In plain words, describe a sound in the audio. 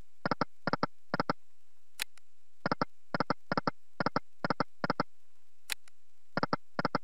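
Slot machine reels stop one after another with quick clicking ticks.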